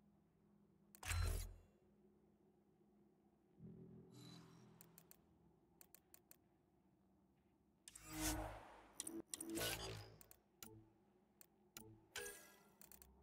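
Electronic menu blips and whooshes sound as selections change.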